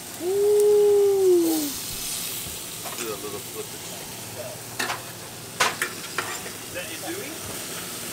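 Sausages sizzle on a grill.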